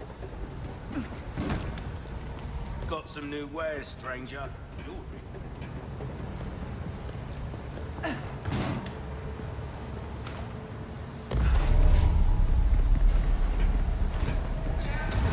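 Footsteps run across a metal walkway.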